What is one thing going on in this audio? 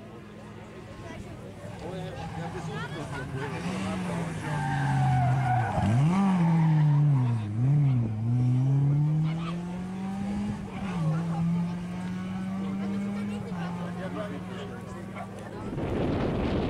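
A rally car engine revs hard and rises and falls in pitch as the car speeds past.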